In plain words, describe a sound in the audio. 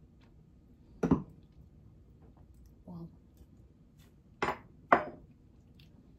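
A spoon clinks and taps against dishes.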